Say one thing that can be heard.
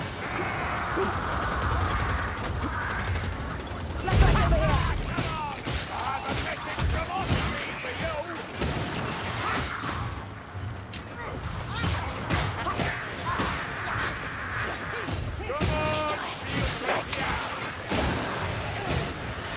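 Heavy weapons swing and thud into flesh again and again.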